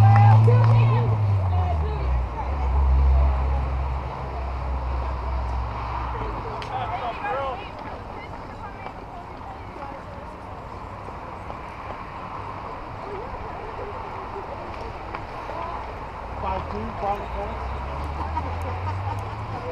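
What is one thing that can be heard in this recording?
Young women call out to each other outdoors.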